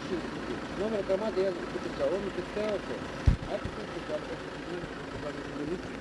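A middle-aged man talks with animation nearby.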